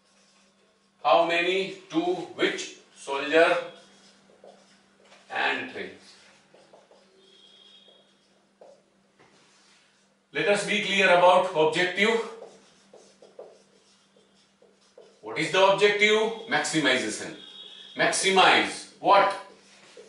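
A man speaks calmly and clearly, as if teaching, close by.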